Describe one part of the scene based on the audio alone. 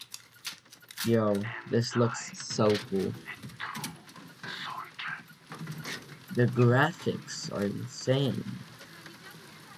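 A man speaks in a low, grim voice.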